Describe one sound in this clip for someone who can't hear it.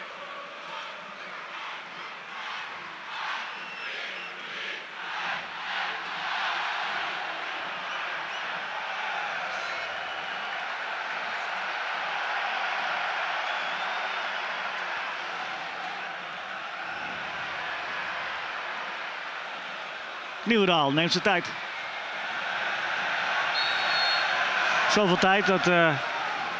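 A large stadium crowd roars and chants outdoors.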